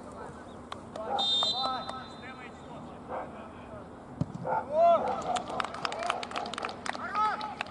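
Young men shout outdoors across a field.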